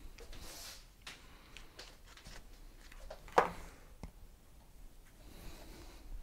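Footsteps walk across a floor indoors.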